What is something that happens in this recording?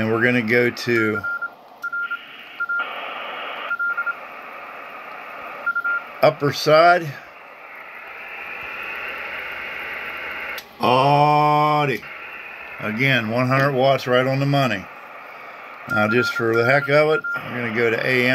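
A radio transceiver beeps short high tones as its buttons are pressed.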